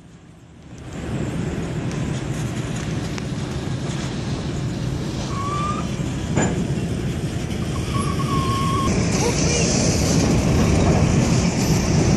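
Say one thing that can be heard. A train rumbles past close by, its wheels clattering over the rails.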